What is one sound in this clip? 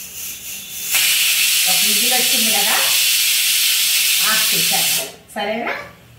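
Steam hisses loudly from a pressure cooker.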